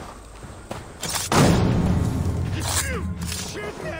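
A blade swings and strikes with a heavy whoosh.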